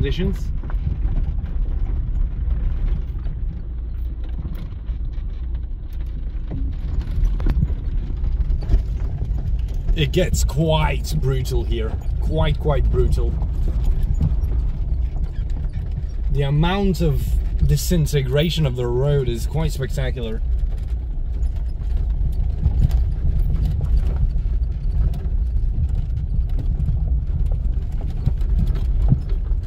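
Tyres crunch and rattle over a rough gravel track.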